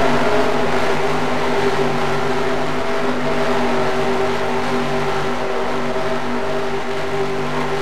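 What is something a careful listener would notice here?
Tyres rumble and hiss over a dirt track.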